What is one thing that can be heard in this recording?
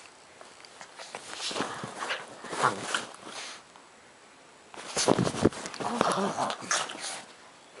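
A dog scuffles and thumps on a bed cover.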